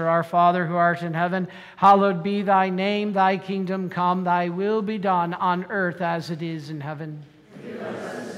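A man chants prayers through a microphone in an echoing hall.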